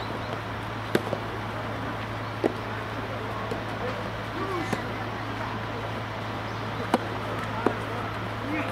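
A tennis racket hits a ball with sharp pops.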